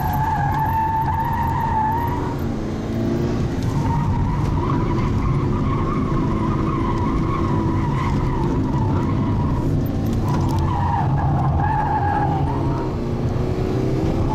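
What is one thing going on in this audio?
Tyres rumble over rough concrete.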